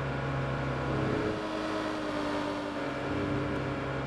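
A truck engine briefly drops away and comes back as gears shift.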